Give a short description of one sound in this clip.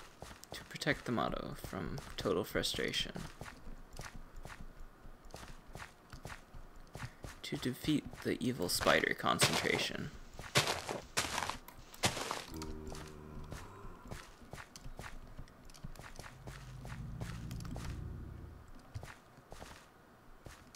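Footsteps crunch steadily on dirt and stone.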